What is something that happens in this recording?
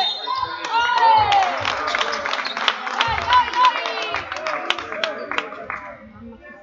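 A basketball bounces on the floor in an echoing hall.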